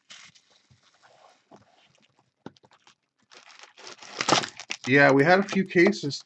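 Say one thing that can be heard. Plastic wrapping crinkles as it is torn off a box.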